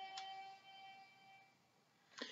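A toy plays short electronic tones.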